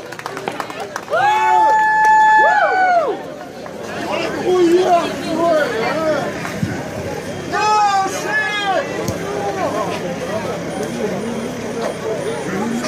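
Young men and women chat casually nearby, outdoors.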